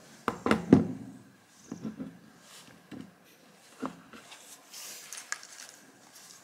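A plastic object clicks and rattles as hands handle it.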